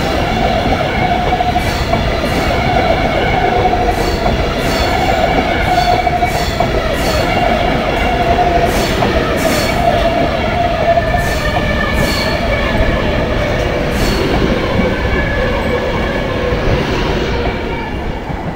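A train rushes past close by with a loud rumble and whine.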